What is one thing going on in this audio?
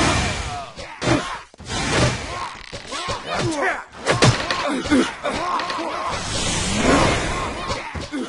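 Weapons strike and clash in a fast, busy fight.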